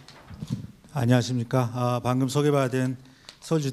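A man speaks calmly into a microphone over loudspeakers in a large hall.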